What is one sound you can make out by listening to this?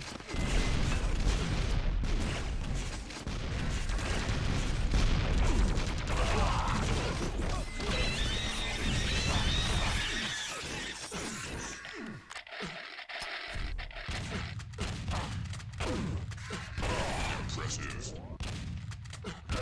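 Guns fire and rockets explode in quick bursts.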